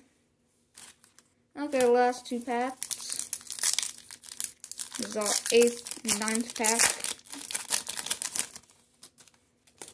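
Foil wrappers crinkle and rustle close by.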